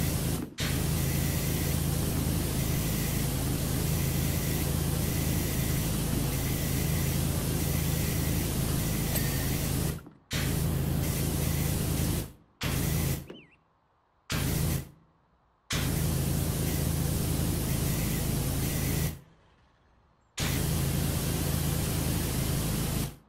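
A pressure washer sprays water in a steady hiss, cutting out briefly now and then.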